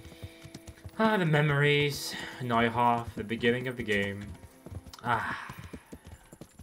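A person speaks with animation close to a microphone.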